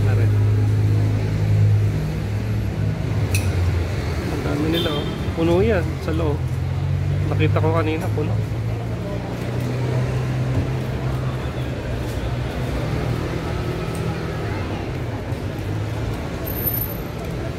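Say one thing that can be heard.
Traffic rumbles steadily along a street.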